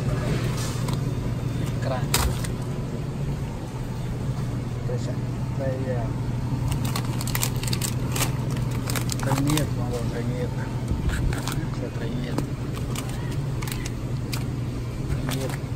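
Plastic wrapping crinkles as a hand squeezes a package.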